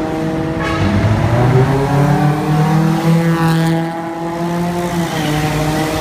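Traffic passes on a road.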